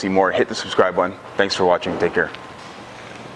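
A young man speaks calmly and clearly to a nearby microphone.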